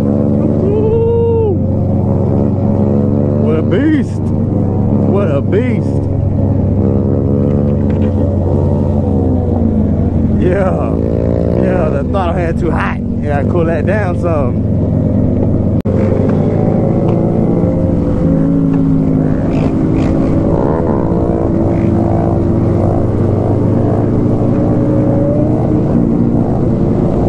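A motorcycle engine hums loudly and steadily close by.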